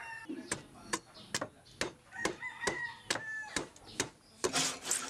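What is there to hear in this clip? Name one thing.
A hammer taps sharply on metal, again and again.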